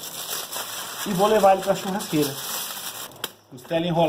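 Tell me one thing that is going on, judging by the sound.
Aluminium foil crinkles and rustles.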